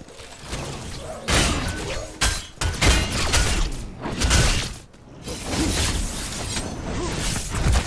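Blades swing and strike in quick, sharp bursts.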